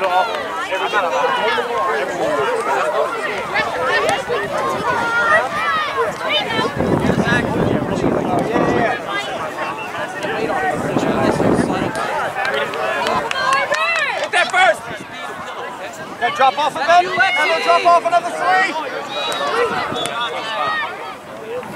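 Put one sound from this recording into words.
Spectators cheer and shout from the sidelines outdoors.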